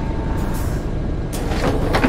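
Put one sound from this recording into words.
Bus doors open with a hiss of air.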